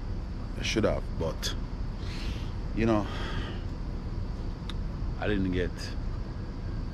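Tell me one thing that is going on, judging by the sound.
A young man speaks in short bursts close by.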